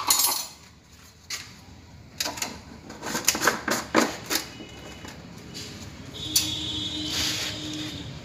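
A plastic jar knocks and scrapes on a hard floor.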